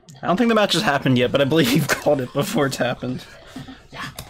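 A man laughs through a microphone.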